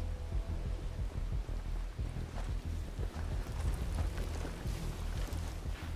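Footsteps rustle slowly through grass and brush.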